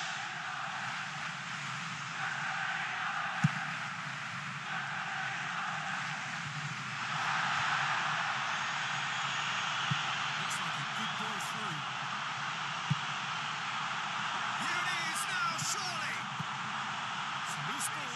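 A large crowd roars steadily in a stadium, swelling louder partway through.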